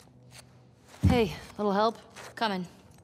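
A young woman calls out, asking for help.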